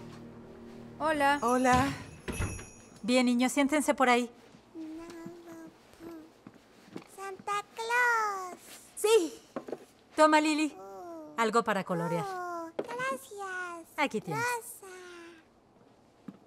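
Young girls talk excitedly in high voices nearby.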